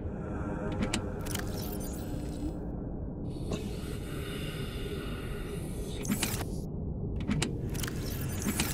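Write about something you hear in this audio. Short soft clicks sound now and then.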